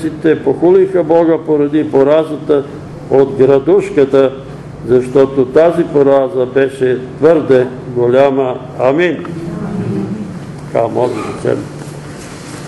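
An elderly man reads aloud steadily, close by.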